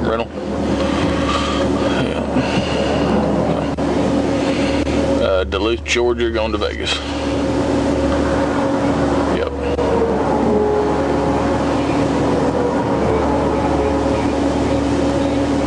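A car's engine hums steadily inside the cabin.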